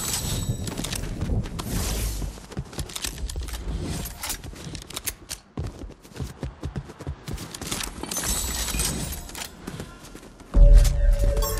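Quick footsteps patter across hard floors.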